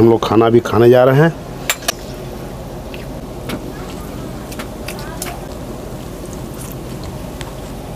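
A man eats rice by hand from a metal plate.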